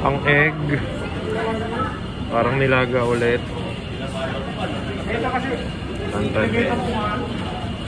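A spoon dips and stirs in a bowl of soup.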